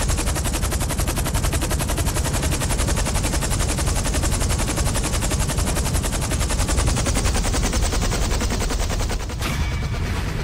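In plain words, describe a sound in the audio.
A helicopter's rotor thumps rapidly and loudly as it lands.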